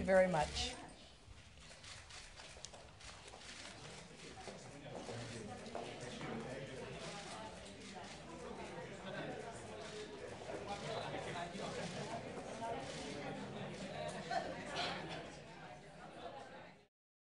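A crowd of people murmurs and chats quietly.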